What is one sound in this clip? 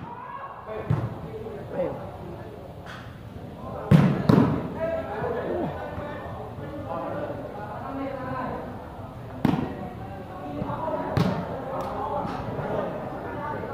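Young men shout and call out during play.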